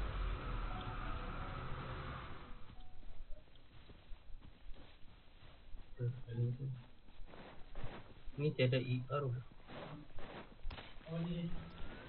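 Quick footsteps patter over grass and stone.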